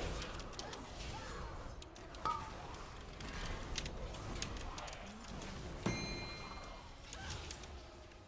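Spell effects crackle and whoosh in a game battle.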